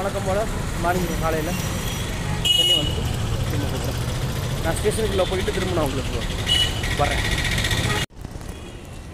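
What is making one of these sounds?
A young man talks with animation close to the microphone, outdoors.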